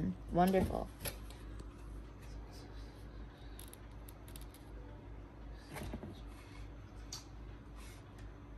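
Wooden and cardboard pieces knock and rustle softly while being handled.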